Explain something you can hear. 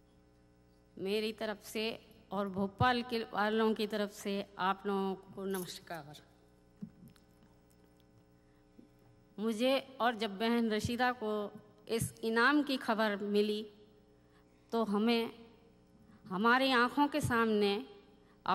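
An older woman speaks slowly and with emotion into a microphone in a large hall.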